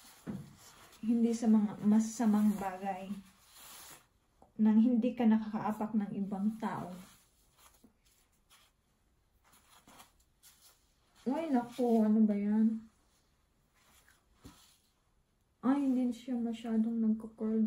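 A young woman talks calmly and closely into a microphone, in short bursts.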